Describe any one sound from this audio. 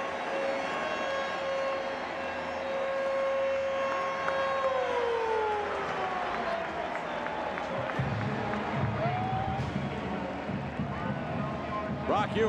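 A large crowd cheers and applauds loudly in a stadium.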